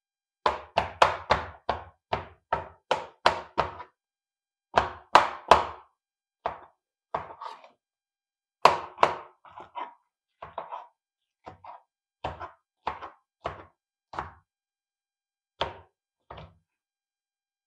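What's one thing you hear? A knife chops through peppers onto a cutting board in quick, sharp taps.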